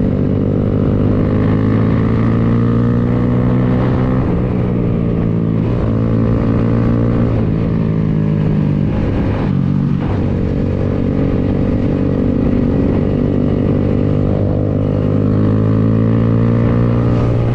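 A motorcycle engine hums steadily up close, its pitch rising and falling with the throttle.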